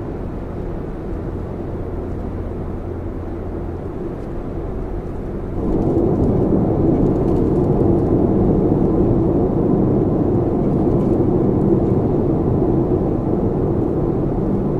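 Tyres roar on the road surface, growing louder partway through.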